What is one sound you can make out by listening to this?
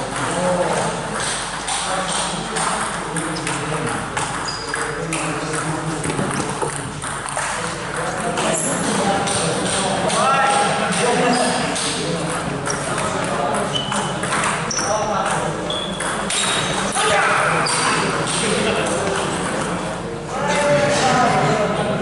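A table tennis ball clicks back and forth off paddles and a table in an echoing hall.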